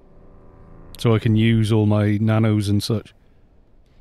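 A man speaks loudly into a close microphone.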